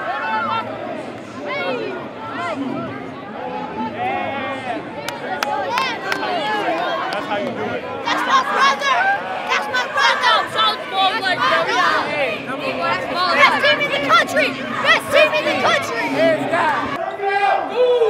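A crowd of boys and young men shouts and cheers excitedly in a large echoing hall.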